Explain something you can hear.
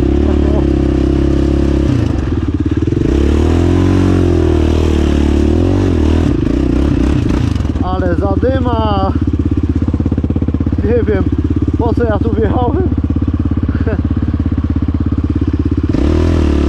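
A quad bike engine roars close by, revving up and down.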